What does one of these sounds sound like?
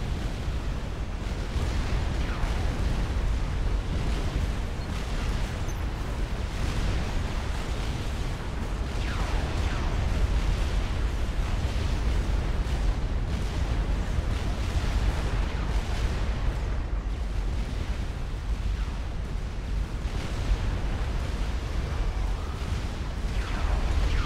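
Explosions rumble low and steady in a large battle.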